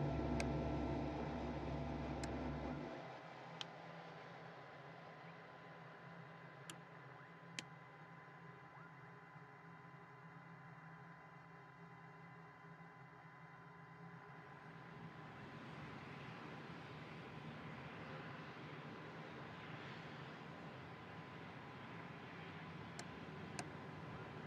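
A jet engine hums steadily, loud at first and then quieter.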